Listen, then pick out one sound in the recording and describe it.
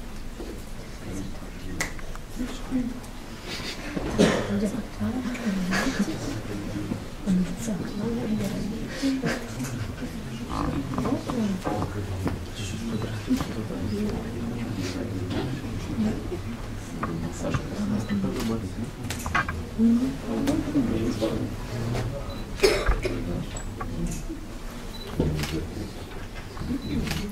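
A crowd of men and young people murmur and talk.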